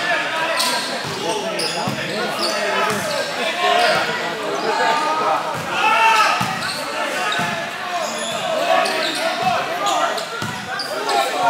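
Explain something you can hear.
A crowd of young men shout and chatter loudly in a large echoing hall.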